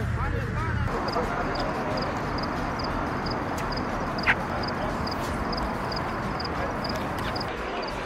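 Wire fencing rattles as people climb through it.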